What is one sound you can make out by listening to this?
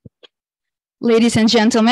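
A woman speaks into a microphone over loudspeakers in a hall.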